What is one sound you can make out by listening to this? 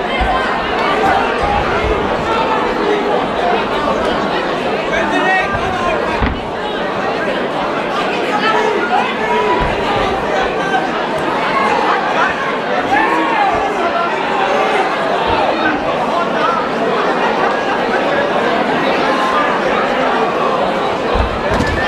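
A crowd shouts and cheers loudly throughout, echoing in a large hall.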